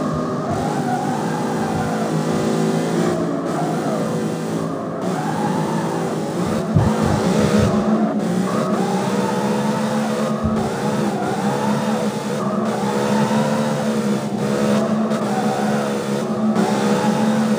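Tyres squeal as a car drifts.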